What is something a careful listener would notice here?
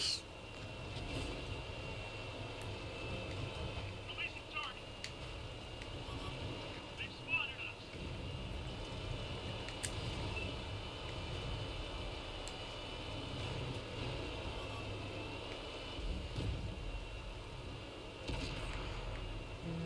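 Tank tracks clank and crunch over snow.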